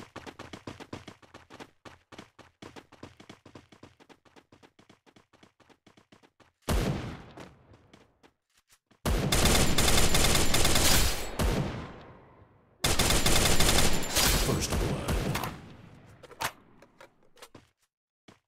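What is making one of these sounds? Rapid gunshots crack from a rifle in quick bursts.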